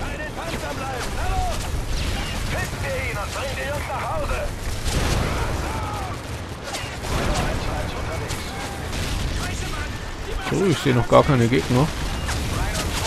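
A man calls out orders urgently over a radio.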